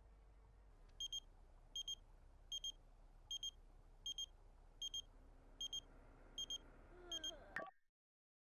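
A phone ringtone chimes in quick repeating double beeps.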